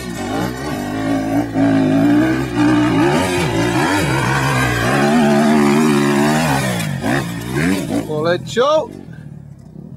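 A dirt bike engine revs loudly, rising and falling in pitch.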